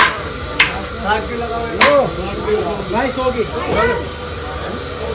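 Men talk with animation close by.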